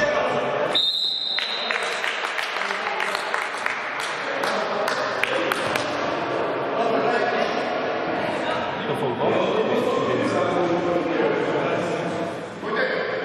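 Men shout and call out to each other across the hall.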